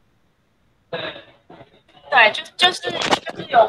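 A young man speaks over an online call.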